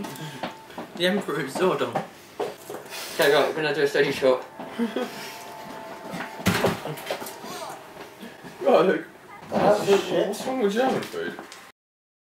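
A second young man laughs and talks nearby.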